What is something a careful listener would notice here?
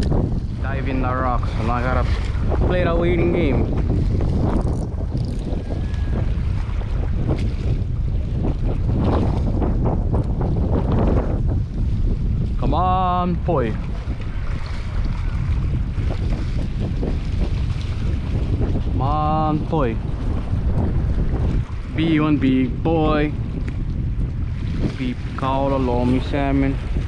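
Small waves splash and lap against rocks.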